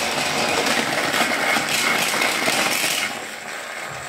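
A small toy train engine knocks against toy wagons on a plastic track.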